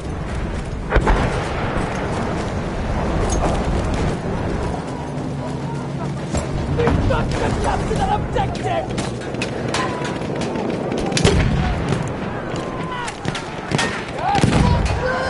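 Gunshots crack sharply from time to time.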